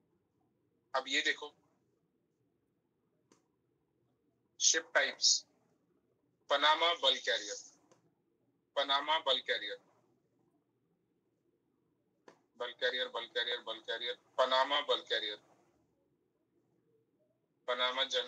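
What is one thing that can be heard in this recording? A young man speaks calmly in bursts through an online call.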